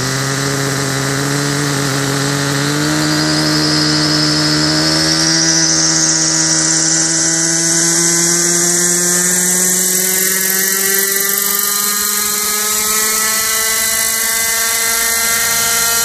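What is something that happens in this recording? A small model helicopter's engine whines loudly and rises in pitch as it lifts off.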